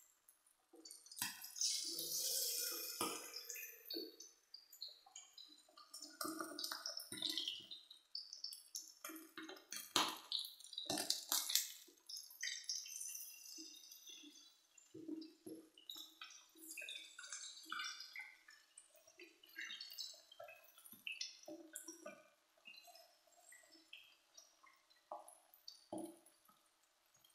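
Pieces of food drop into hot oil with a sharp hiss.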